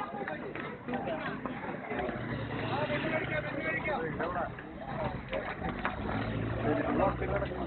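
A crowd of people chatter and call out nearby outdoors.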